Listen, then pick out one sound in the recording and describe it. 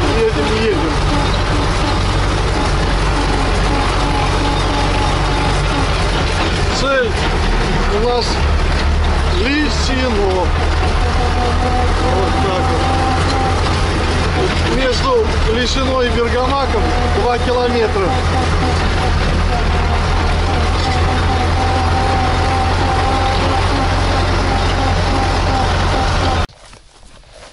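Tyres rumble over a rough road.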